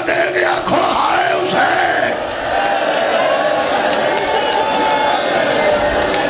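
Men chant together loudly.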